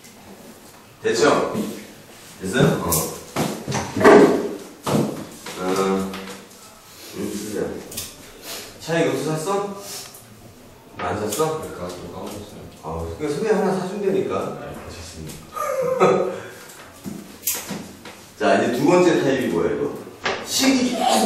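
A man lectures with animation.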